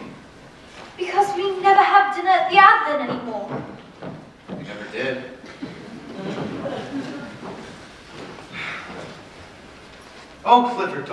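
A woman speaks lines, heard from afar in a large hall.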